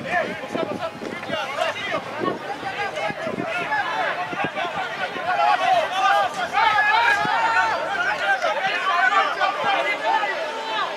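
Several men shout and call out to each other across an open outdoor field.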